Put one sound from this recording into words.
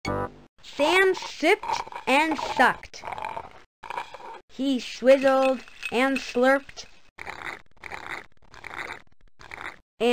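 A straw slurps noisily from a drink.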